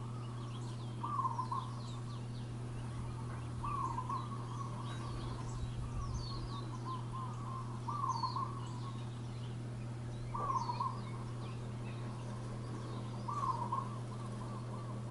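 A bird chirps repeatedly outdoors.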